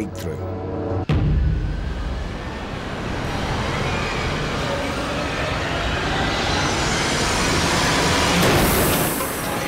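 A car engine revs as the car speeds up.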